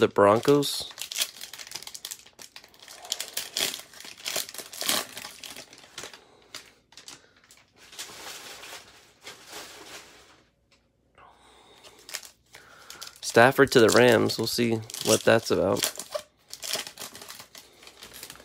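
A foil wrapper crinkles and rips as it is torn open by hand.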